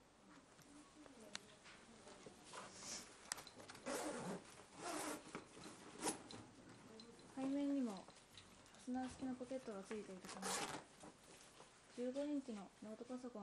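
Stiff fabric rustles and scrapes as a bag is handled.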